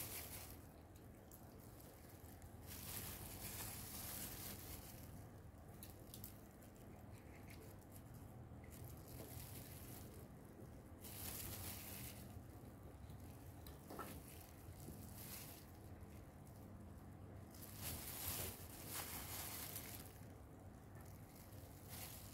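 A small metal tool scrapes softly against soft fruit.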